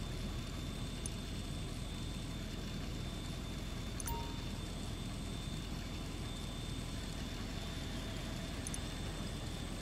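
Short interface clicks sound as menu options are selected.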